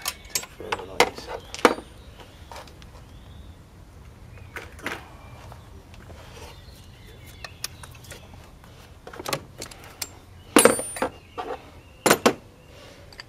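Metal spanners clank down onto a plastic panel.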